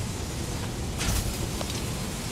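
A sharp magical whoosh rushes past.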